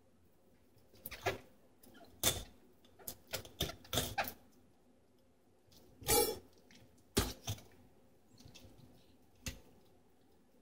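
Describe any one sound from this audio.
A knife cuts and scrapes through fish flesh.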